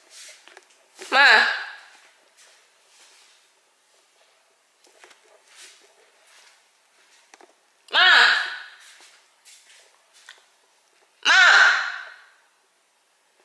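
A young woman calls out loudly up close in short bursts.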